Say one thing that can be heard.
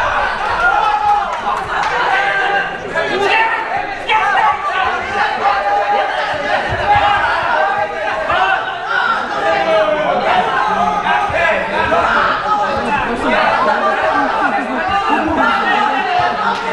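A crowd of spectators chatters loudly in a large echoing hall.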